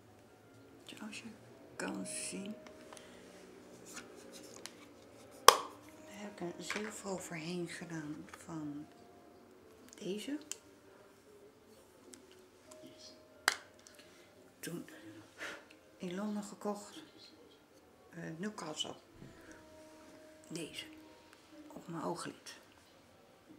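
A middle-aged woman talks calmly close by.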